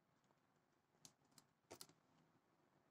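A cardboard box rustles as hands turn it over.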